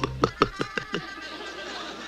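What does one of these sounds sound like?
A cartoon dog gulps loudly several times.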